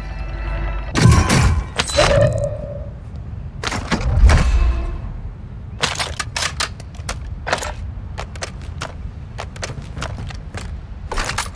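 Metal gear clatters sharply as items are picked up.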